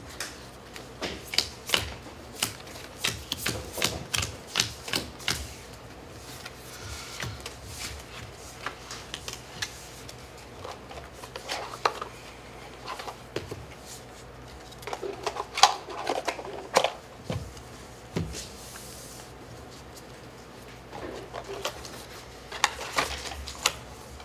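Cards tap and slide on a table mat.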